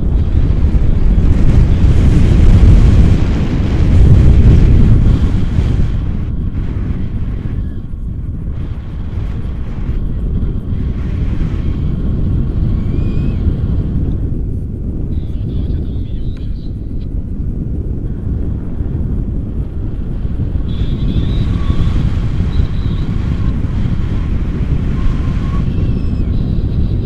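Strong wind gusts and rumbles across an open mountainside.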